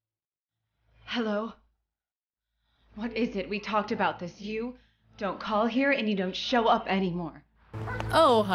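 A young woman talks on a phone with urgency.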